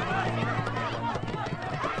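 A young woman sings loudly.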